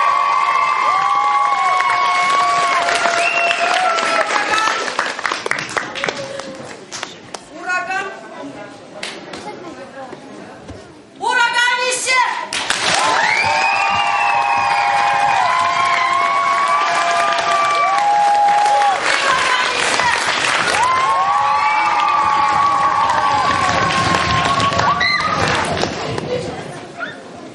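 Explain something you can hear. A woman sings into a microphone through loudspeakers in an echoing hall.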